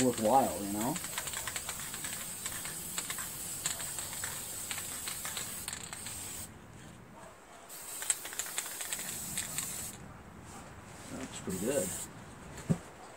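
A spray can hisses in short and long bursts.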